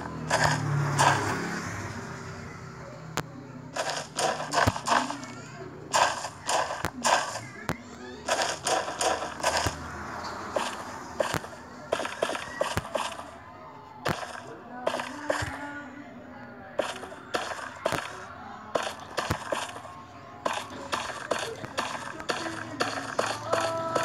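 Footsteps tread quickly and steadily on hard ground.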